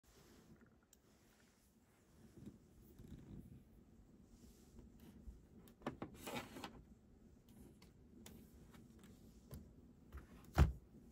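A cat purrs softly up close.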